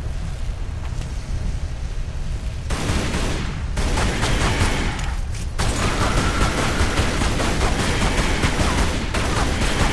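Pistols fire rapid shots.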